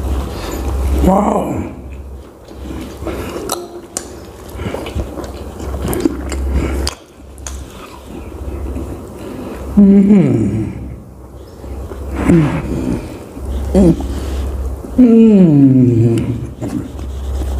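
A man hums and murmurs with pleasure close to a microphone.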